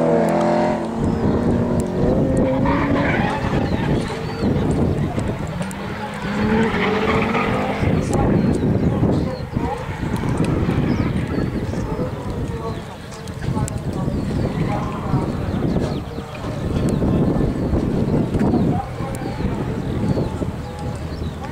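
Car tyres screech on asphalt in the distance.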